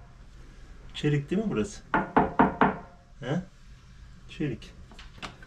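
A young man talks quietly up close.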